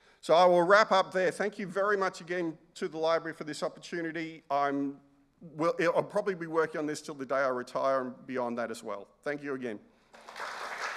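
A middle-aged man speaks calmly into a microphone in a large hall.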